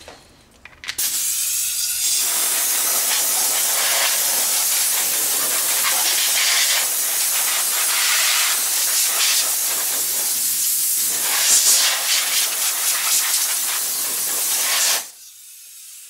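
Compressed air hisses loudly in long bursts.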